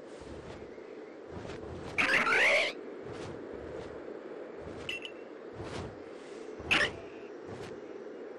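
A large bird's wings flap in a steady beat.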